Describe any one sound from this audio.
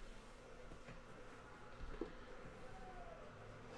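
Cardboard packaging rustles and scrapes as a box is opened by hand.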